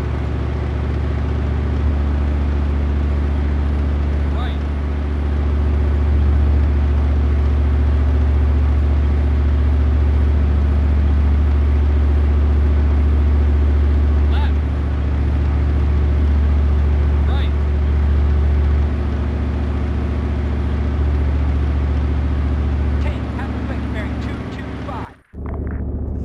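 Tank tracks clatter and squeak over the ground.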